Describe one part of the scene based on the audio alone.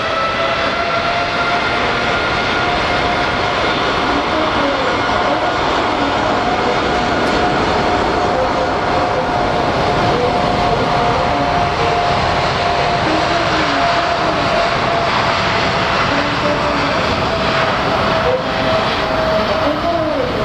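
Jet engines roar loudly and steadily with a high whine as a large airliner rolls by.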